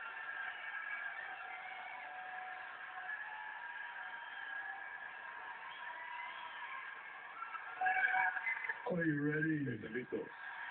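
A large crowd cheers and chants loudly in a big arena.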